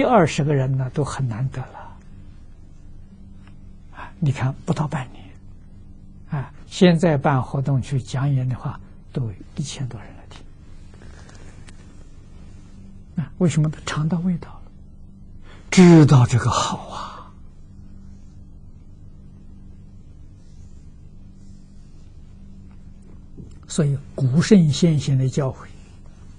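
An elderly man speaks calmly and warmly into a close microphone, pausing between phrases.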